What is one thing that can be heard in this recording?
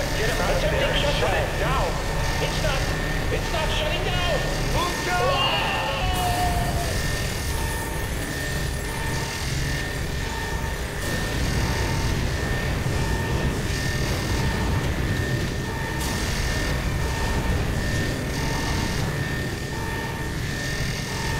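Electricity crackles and buzzes loudly in a large echoing hall.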